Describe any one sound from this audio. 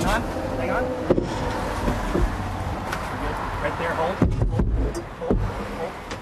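A car passes by on the road.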